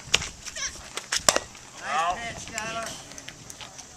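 A bat cracks sharply against a softball.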